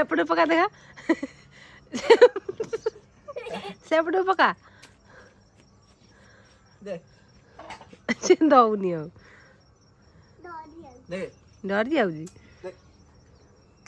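A little girl squeals and babbles excitedly nearby.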